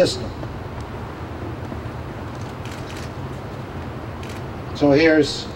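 An older man speaks into a microphone outdoors, with short pauses.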